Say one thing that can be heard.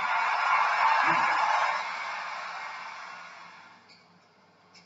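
A crowd applauds, then fades away.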